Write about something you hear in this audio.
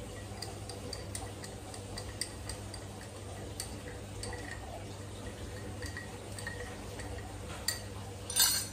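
A spoon clinks against the inside of a cup as a drink is stirred.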